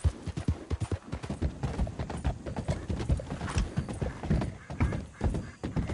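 Horse hooves thud on a wooden bridge.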